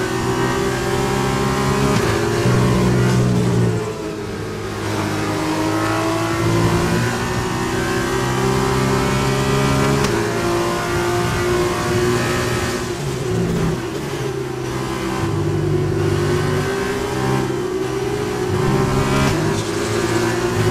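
A racing car engine roars and whines as it shifts gears.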